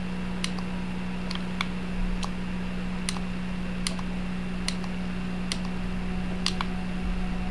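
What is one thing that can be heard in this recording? Footsteps click on a hard floor at a steady walking pace.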